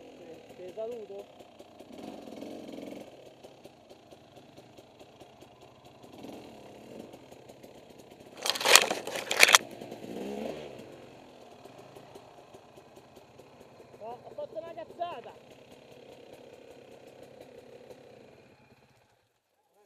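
A dirt bike engine runs.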